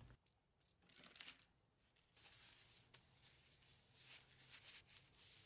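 A cloth rubs along a wooden stick.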